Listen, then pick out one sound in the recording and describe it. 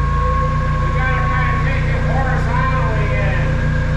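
A man talks calmly nearby in an echoing room.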